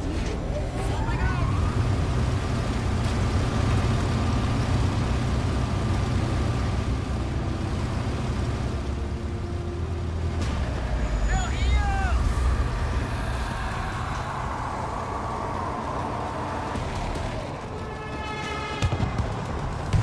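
A large generator engine starts and rumbles steadily.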